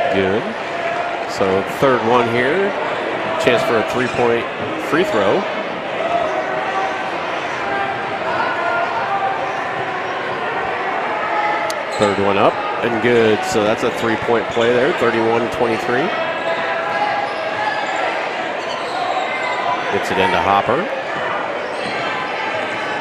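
A large crowd murmurs in an echoing gym.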